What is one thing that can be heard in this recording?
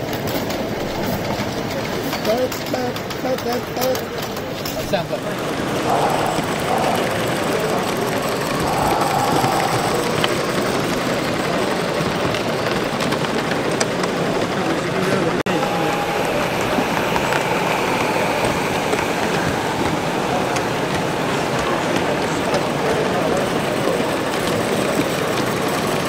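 Small model train wheels clatter along the tracks.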